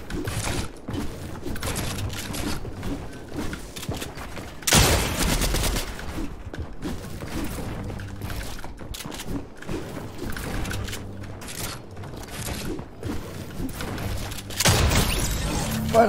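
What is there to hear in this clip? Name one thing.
Video game gunshots crack in quick bursts.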